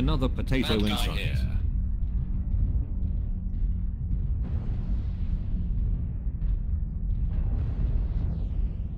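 A walking mech's cockpit rumbles low and heavy.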